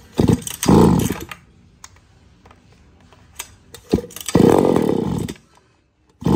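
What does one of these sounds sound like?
A chainsaw's starter cord is yanked, making the engine sputter briefly.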